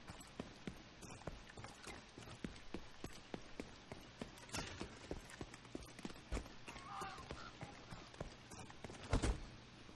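Rapid gunshots crack and echo between buildings.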